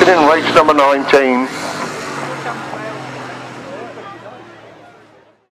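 Motorcycle engines roar loudly as racing sidecars speed past, then fade into the distance.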